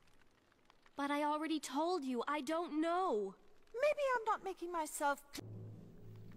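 A young woman speaks pleadingly.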